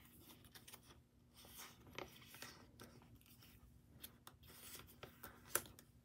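Plastic sleeves rustle and crinkle as hands handle them close by.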